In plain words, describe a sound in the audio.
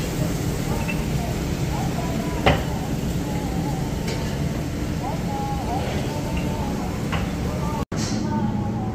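Metal utensils clatter.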